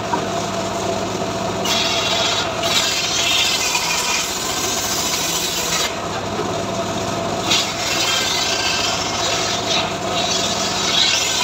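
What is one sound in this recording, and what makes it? A machine engine runs with a steady drone.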